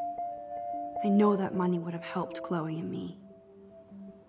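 A second young woman speaks quietly and thoughtfully, close by.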